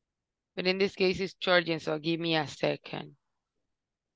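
A young woman speaks with animation over an online call.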